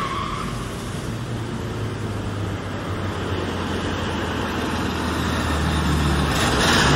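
A small car engine putters and revs as the car drives across pavement.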